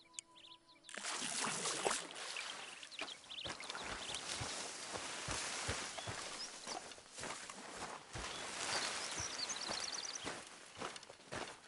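Footsteps crunch and rustle through dry brush.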